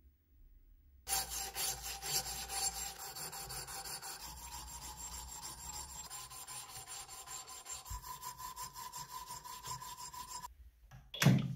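An abrasive strip rubs rapidly back and forth over metal.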